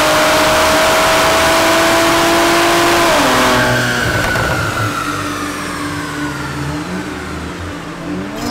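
A car engine roars loudly at high revs, then drops in pitch and winds down.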